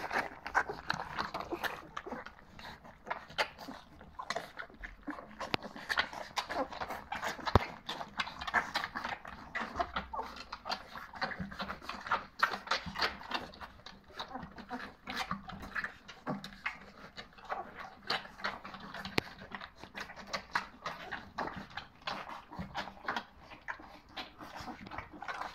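A metal bowl clinks and rattles as puppies push at it.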